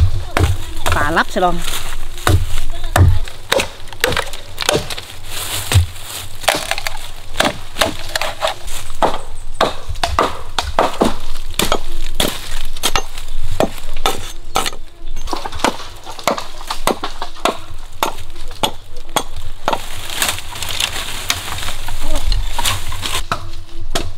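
A blade chops into wood with sharp, repeated knocks.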